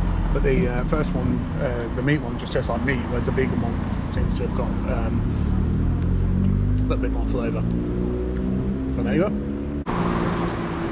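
A middle-aged man talks calmly and close by, outdoors.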